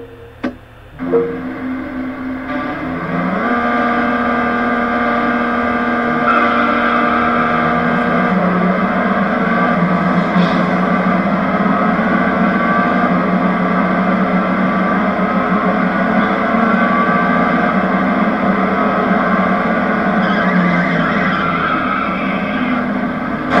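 A racing car engine idles, then revs up and roars steadily at high speed.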